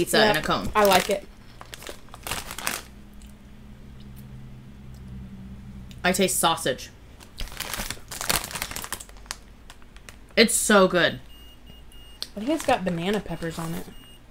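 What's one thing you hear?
A plastic snack bag crinkles as it is opened.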